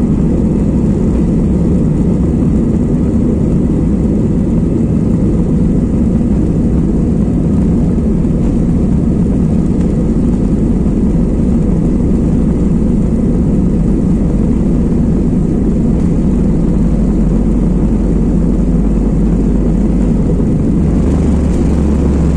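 Jet engines of an airliner roar low and steady, heard from inside the cabin as it rolls along a runway.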